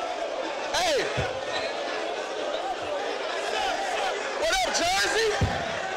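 A crowd murmurs and cheers.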